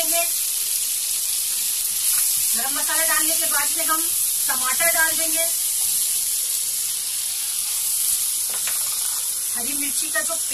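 Food sizzles and bubbles steadily in a pan.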